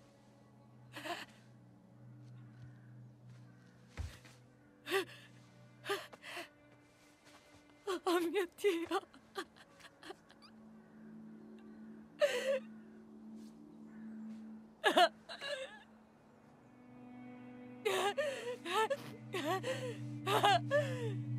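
A young woman sobs and gasps close by.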